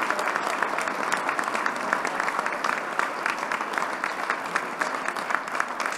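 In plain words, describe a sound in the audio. A large crowd applauds steadily in a big hall.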